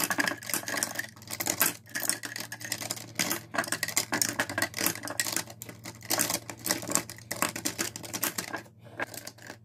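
Plastic tubes clatter and click against a plastic holder.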